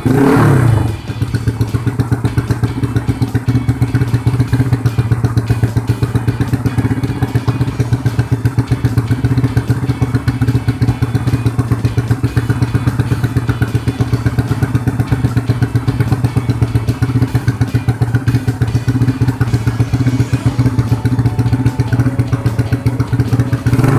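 A four-stroke single-cylinder motorcycle engine idles with a rough, uneven beat.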